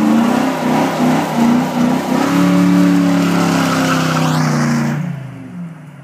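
Tyres squeal as they spin on the road.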